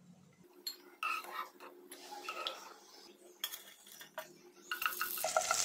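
A metal spoon clinks and scrapes against a pot.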